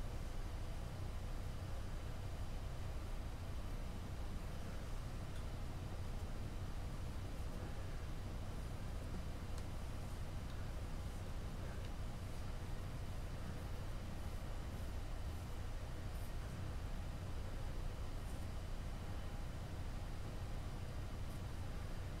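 A tool scrapes and presses softly on clay close by.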